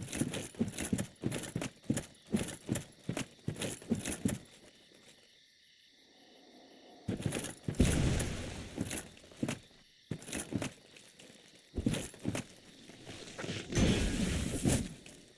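Heavy armoured footsteps clank and thud at a steady pace.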